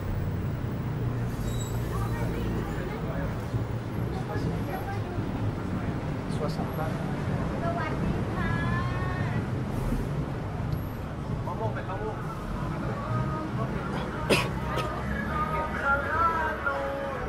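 Men and women chatter nearby in a busy street.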